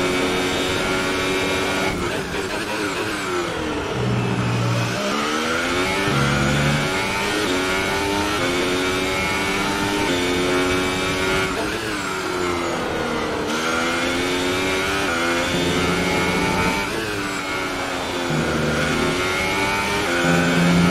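A racing car engine screams at high revs, rising through the gears and dropping as it slows for corners.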